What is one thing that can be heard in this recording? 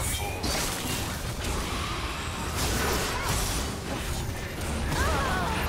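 Magic blasts whoosh and crackle in a fast clash of game sound effects.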